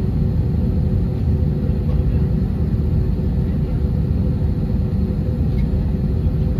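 Turbofan engines hum and rumble inside an airliner cabin as the airliner taxis.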